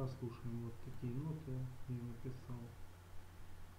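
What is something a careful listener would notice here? A synthesized bass plays a melody of short, plucked notes.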